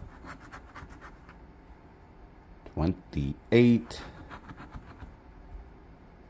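A fingernail scratches quickly at a scratch card.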